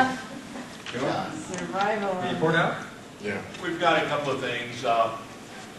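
An elderly man talks and answers across a table.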